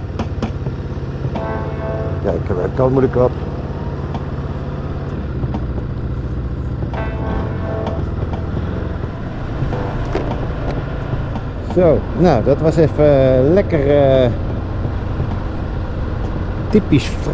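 A motorcycle engine hums steadily while riding slowly.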